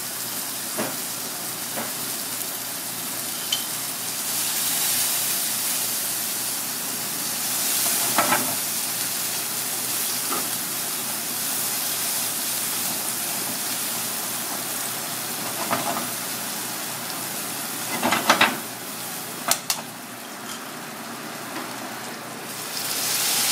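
Food sizzles steadily in hot oil in a pan.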